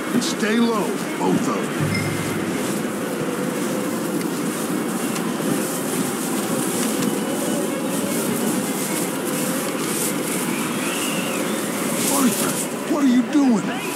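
A strong wind blows steadily outdoors.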